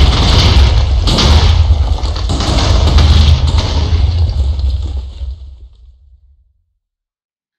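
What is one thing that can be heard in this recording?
A loud explosion booms and rumbles, then slowly fades.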